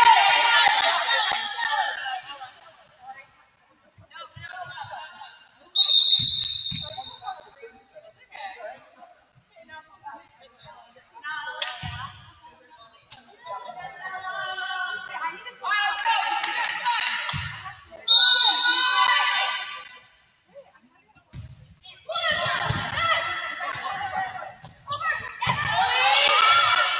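Young women shout and cheer loudly across the court.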